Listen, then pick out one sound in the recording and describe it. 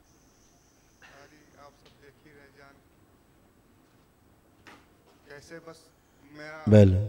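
A young man speaks softly into a microphone.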